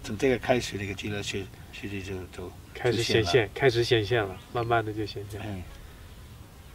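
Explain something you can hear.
An elderly man speaks calmly and earnestly, close by.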